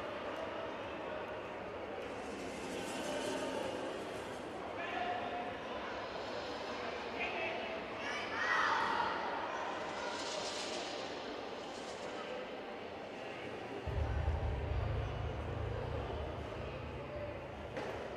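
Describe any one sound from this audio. A group of children talk and murmur in an echoing hall.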